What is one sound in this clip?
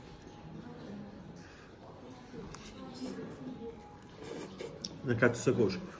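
A young man slurps noodles.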